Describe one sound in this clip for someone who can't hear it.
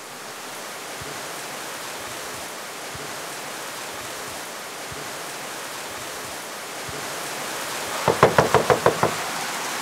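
Rain pours steadily outdoors.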